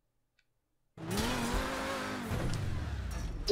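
A sports car engine revs and hums steadily.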